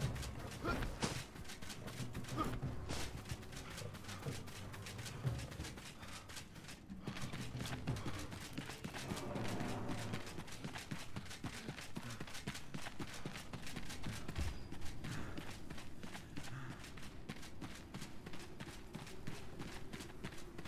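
Footsteps run quickly over dry dirt and grass.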